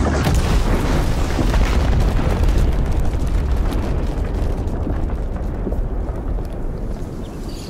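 Rocks and debris rattle and crackle as they fall.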